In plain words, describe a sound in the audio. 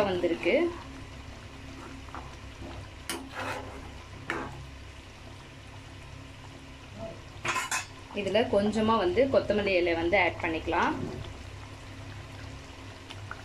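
A metal spoon stirs thick sauce and scrapes against a pot.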